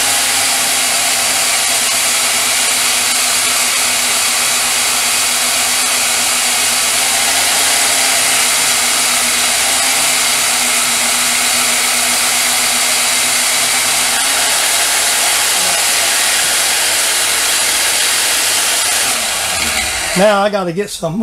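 A band saw runs with a steady high whine and then winds down.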